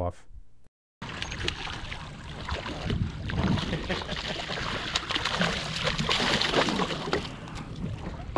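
A fish thrashes and splashes at the water's surface close by.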